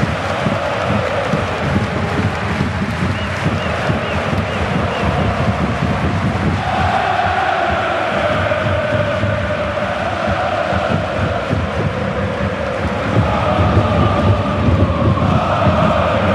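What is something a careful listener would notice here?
Men shout to each other across an outdoor pitch.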